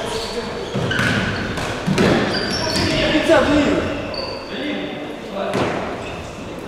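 A ball thumps as it is kicked.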